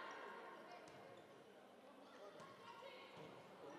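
A volleyball is smacked by a hand, echoing in a large hall.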